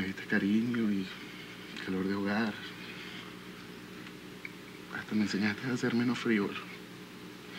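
A man speaks softly and warmly, close by.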